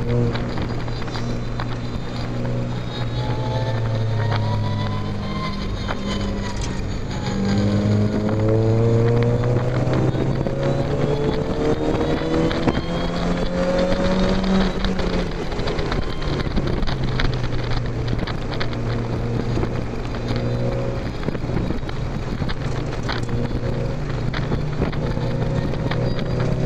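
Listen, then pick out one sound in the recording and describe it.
A car engine roars and revs up and down close by.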